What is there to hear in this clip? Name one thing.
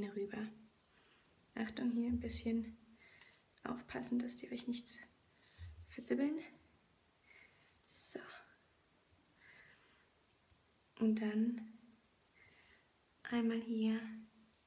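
A young woman talks calmly and close by, in short bursts.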